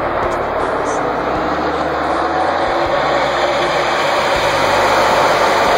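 A pack of race cars roars past with loud, droning engines.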